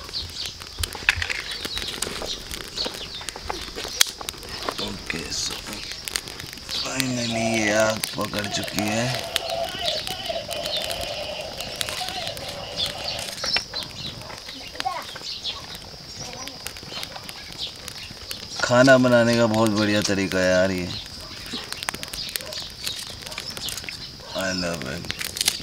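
A small fire crackles and pops.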